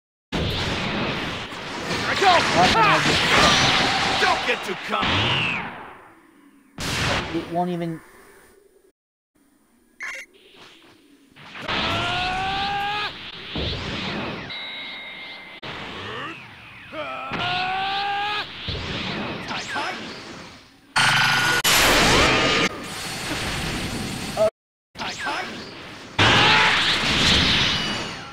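Energy blasts crackle and boom in a fast fight.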